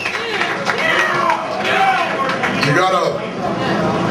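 A man speaks loudly into a microphone through loudspeakers in an echoing hall.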